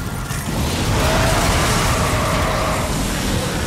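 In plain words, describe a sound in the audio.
A loud explosion bursts nearby.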